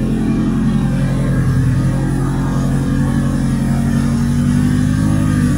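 Tall plants brush and swish against a motorcycle.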